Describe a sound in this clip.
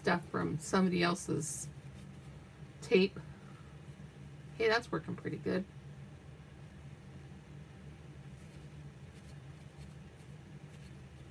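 Tissue paper rustles softly as hands rub it.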